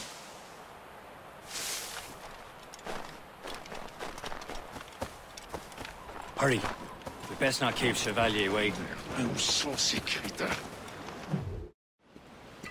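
Footsteps crunch quickly over snow and dirt.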